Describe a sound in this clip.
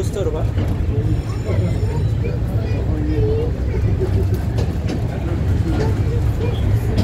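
Voices of men and women chatter at a distance outdoors.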